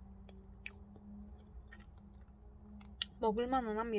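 A soft cookie crumbles as fingers pull it apart.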